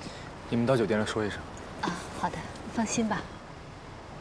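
A woman speaks warmly, close by.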